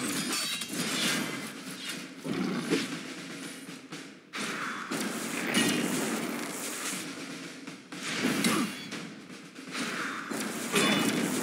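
Swords clash with metallic hits.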